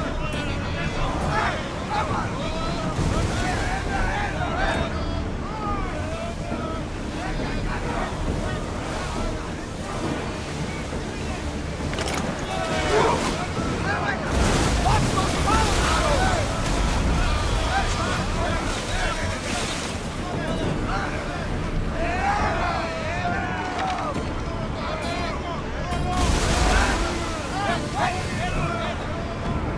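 Wind blows hard over open sea.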